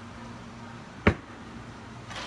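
A plastic cup knocks down onto a hard counter.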